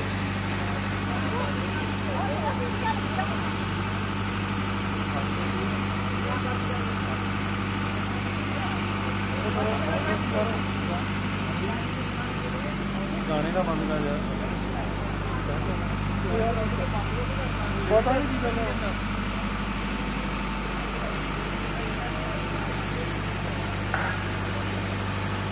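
Men and women chatter in a lively crowd nearby.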